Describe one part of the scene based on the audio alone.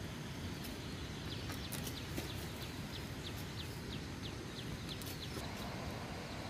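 Dry stalks rustle and snap as hands pull plants from the soil.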